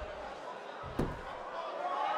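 A body thuds onto a wrestling mat.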